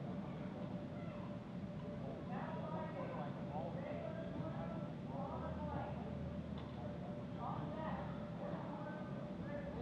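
Several men shout and call out across a large echoing hall.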